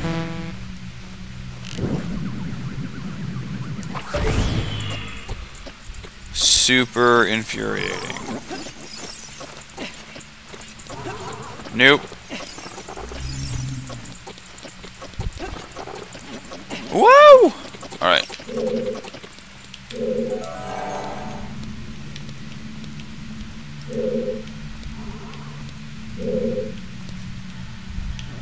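Video game music plays throughout.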